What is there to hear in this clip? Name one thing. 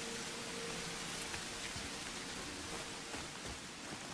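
Heavy footsteps thud slowly on stone.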